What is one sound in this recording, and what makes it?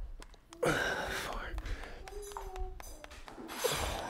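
A man claps his hands slowly.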